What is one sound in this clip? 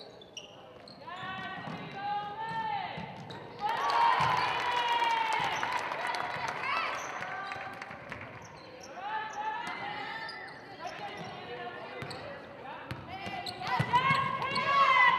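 A crowd of spectators cheers and shouts loudly in an echoing gym.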